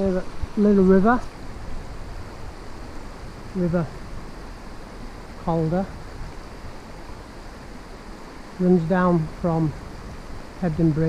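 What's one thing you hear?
A shallow river flows and ripples over stones.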